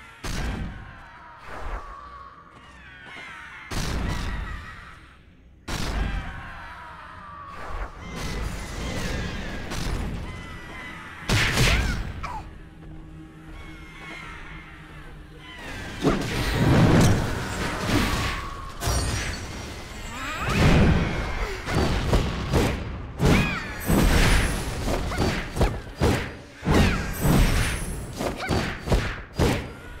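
Sword blows and magic blasts crash in a fight.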